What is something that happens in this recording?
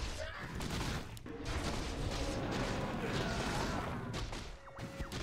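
Game battle effects clash and crackle.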